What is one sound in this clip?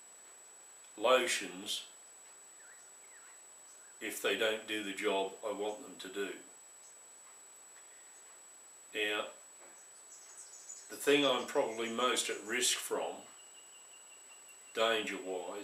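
An elderly man talks calmly and close by, in short phrases with pauses.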